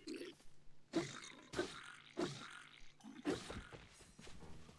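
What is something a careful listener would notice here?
Sword blows strike with sharp thuds.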